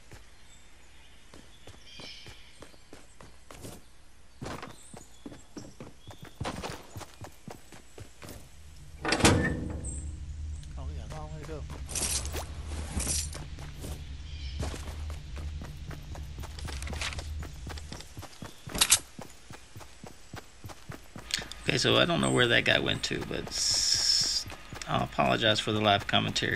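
Footsteps patter quickly on wood and ground.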